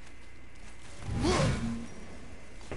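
A heavy body scrapes and thuds against rock and timber.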